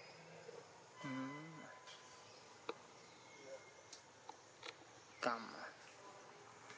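A baby monkey squeals briefly, close by.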